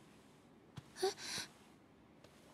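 A young woman speaks softly in an echoing space.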